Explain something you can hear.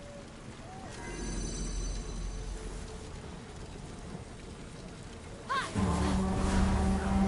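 Fire crackles in braziers.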